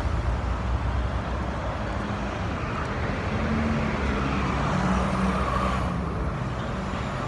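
A bus engine hums as the bus pulls past close by.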